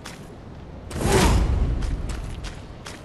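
Heavy paws thud on the ground.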